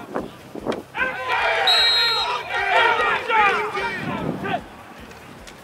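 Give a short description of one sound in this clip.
Spectators cheer and shout loudly outdoors.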